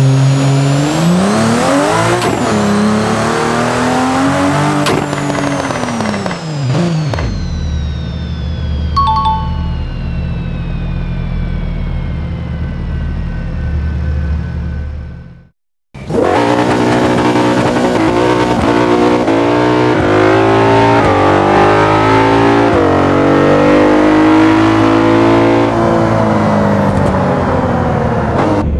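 A car engine revs hard and roars as it speeds up.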